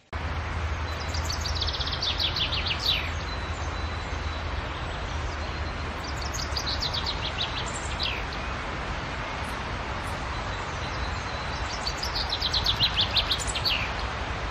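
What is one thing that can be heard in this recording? A small songbird sings a fast, descending trilling phrase several times, close by.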